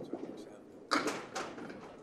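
A candlepin bowling ball rolls down a wooden lane.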